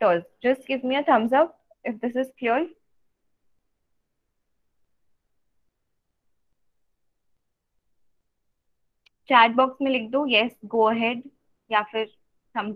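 A young woman speaks calmly over an online call, pausing in between.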